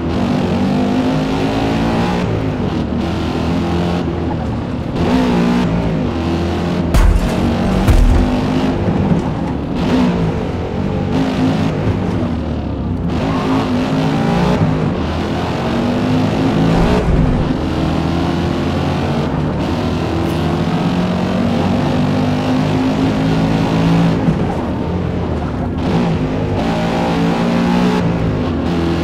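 A racing car engine in a video game revs up and drops as the gears shift.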